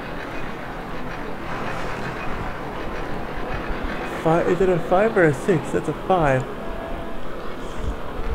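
A roller coaster rattles along its track.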